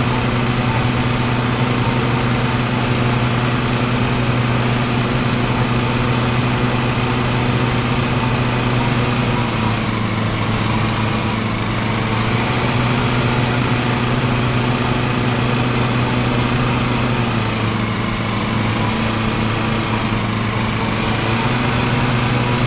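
A riding lawn mower engine hums steadily, dipping slightly in pitch now and then.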